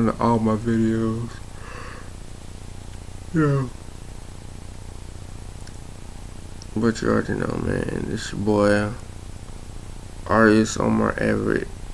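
A young man speaks casually in bursts with pauses, close to the microphone.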